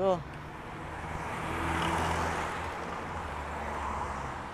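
A car rushes past nearby, swelling and fading.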